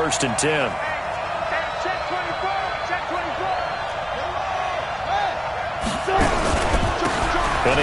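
A large stadium crowd roars steadily, swelling louder near the end.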